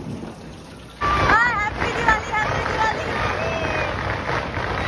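Children call out excitedly outdoors.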